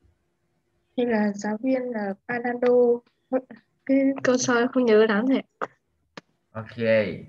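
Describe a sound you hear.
A young woman talks and laughs over an online call.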